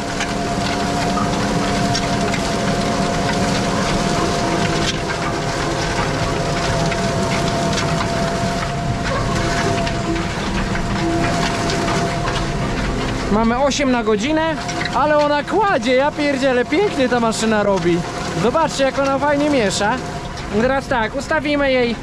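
A tractor engine runs with a steady, droning hum.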